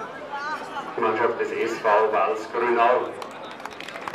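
A man speaks into a microphone over a loudspeaker, outdoors.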